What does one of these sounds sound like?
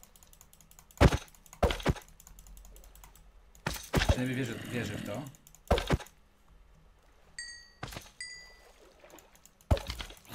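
Heavy wet squelches and thuds come again and again as a creature is struck.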